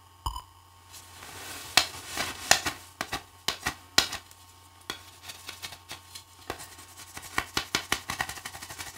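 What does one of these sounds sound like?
A knife shaves and scrapes wood with quick strokes.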